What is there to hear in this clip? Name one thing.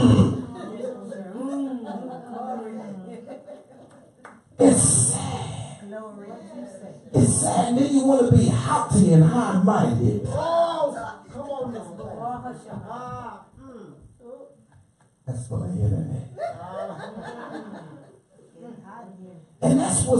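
A man preaches with animation through a microphone in a reverberant hall.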